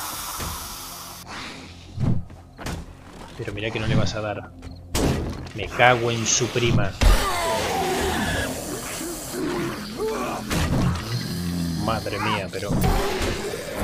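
A zombie snarls and groans close by.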